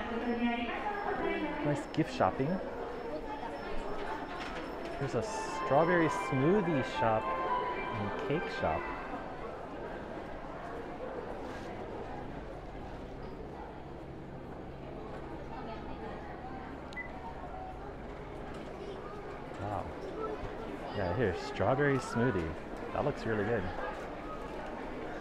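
Young women talk nearby in a lively, casual way.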